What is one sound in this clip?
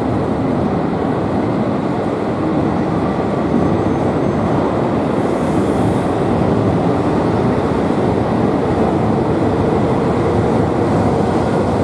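A high-speed train rushes past with a steady roar.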